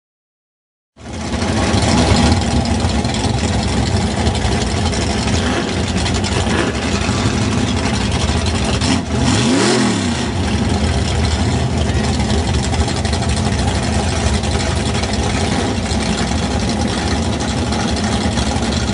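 A race car engine rumbles and revs loudly close by.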